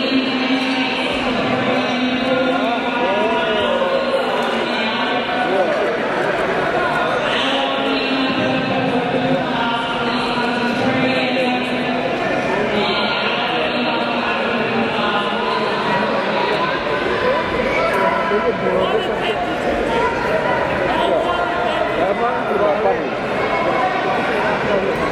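A crowd of men and women chatter and call out in a large echoing hall.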